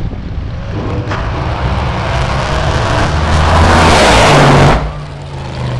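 A drag racing car roars past at full throttle.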